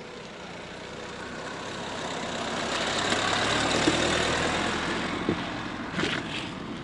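A car drives slowly past close by, its engine swelling and fading.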